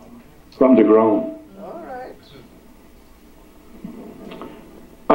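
An elderly man speaks through a microphone with a loud, animated voice in an echoing hall.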